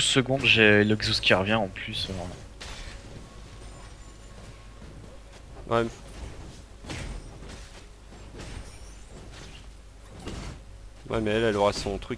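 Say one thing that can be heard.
A lightning bolt cracks down with a sharp zap.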